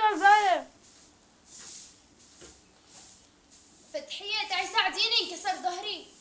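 A broom sweeps across a stone floor with soft, regular swishes.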